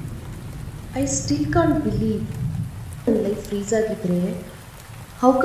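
A woman speaks anxiously, close by.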